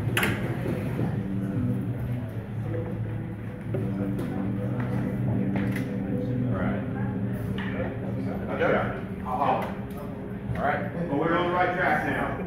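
An electric guitar and keyboard play a steady rock groove.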